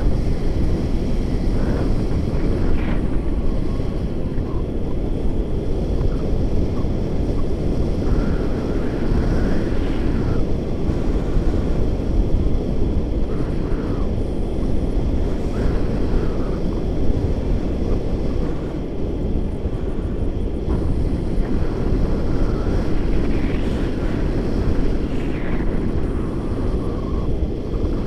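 Strong wind rushes and buffets loudly close by.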